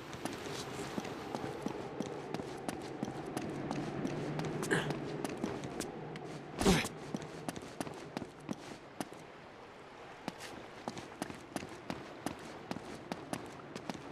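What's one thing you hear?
Footsteps thud quickly on wooden boards.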